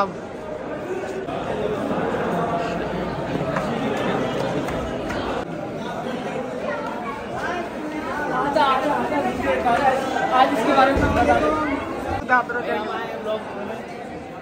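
A crowd of young people chatters.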